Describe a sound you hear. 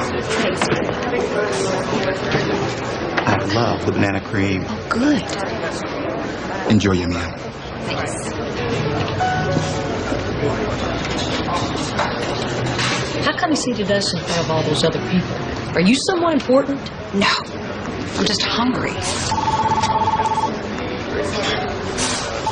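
Diners chatter in a busy room.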